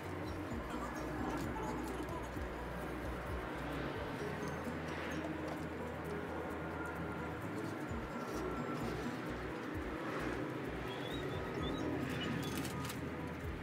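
Someone rubs and scrapes at a glass window.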